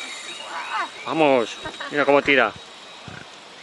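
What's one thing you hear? An older man calls out with excitement nearby.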